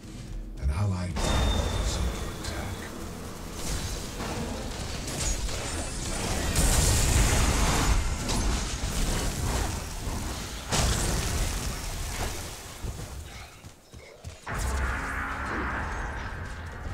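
Blasts and clashing effects of a fight play in a game.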